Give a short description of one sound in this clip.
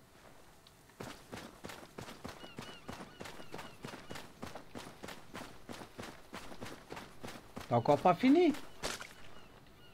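Footsteps run quickly over sand.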